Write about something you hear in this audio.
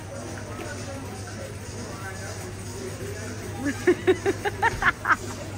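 Shoppers murmur indistinctly in the background.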